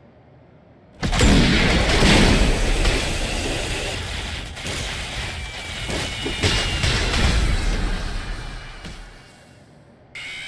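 A loud crackling energy blast roars and booms.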